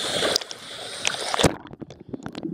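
Water splashes at the surface.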